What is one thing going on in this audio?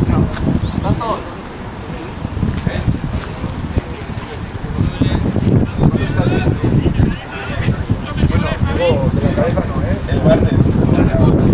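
Young men shout to one another outdoors at a distance.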